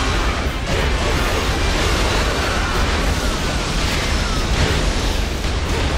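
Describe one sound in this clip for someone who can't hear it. Magic bursts whoosh and crackle.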